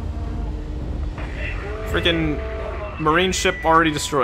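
Explosions burst against a spaceship's hull.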